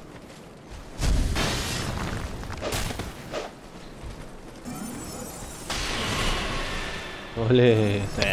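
A sword whooshes through the air and strikes with a heavy thud.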